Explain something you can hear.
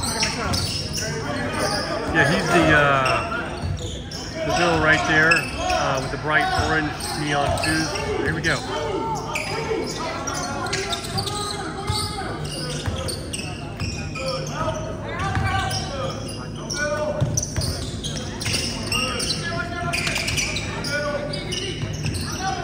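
Children and adults talk and shout around a large echoing gym.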